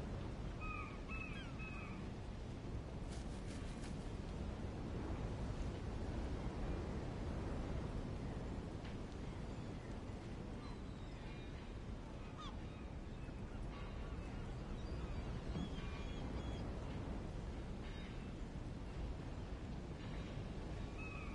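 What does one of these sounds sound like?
Waves lap and splash steadily against a shore.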